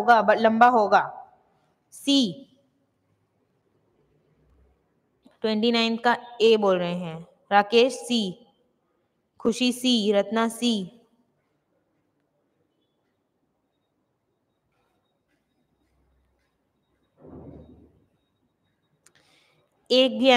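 A young woman speaks calmly into a microphone, pausing between phrases.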